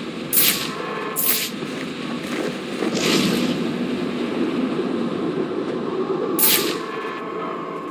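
A cape flaps loudly in rushing air during a glide.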